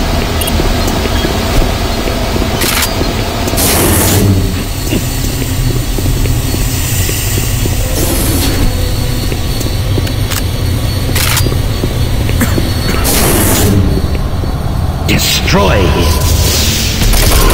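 A low mechanical hum drones steadily throughout.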